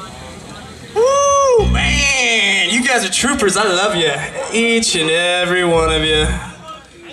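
A rock band plays loudly with electric guitars and drums.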